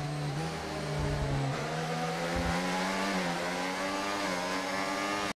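A racing car engine whines loudly at high revs, shifting pitch as the gears change.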